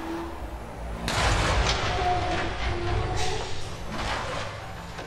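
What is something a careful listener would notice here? A truck slams into a car with a crunch of metal.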